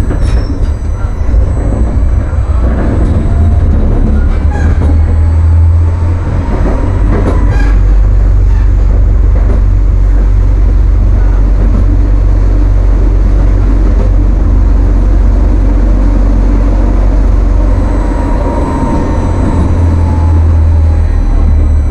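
A tram rumbles steadily along rails.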